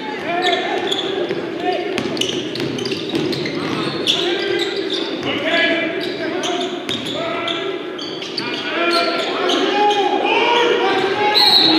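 A basketball bounces with dull thuds.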